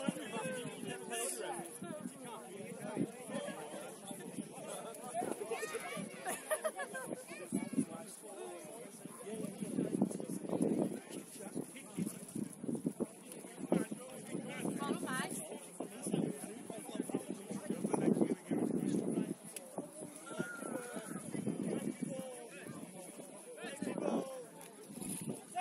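A crowd of men, women and children chatter and call out nearby, outdoors.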